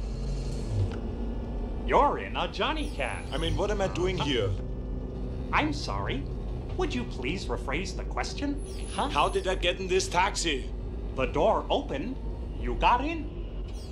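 A robotic male voice speaks cheerfully.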